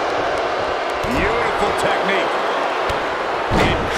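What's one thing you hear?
Bodies slam heavily onto a wrestling ring.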